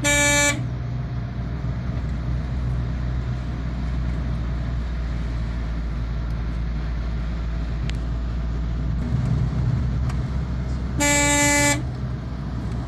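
A car horn honks twice, briefly.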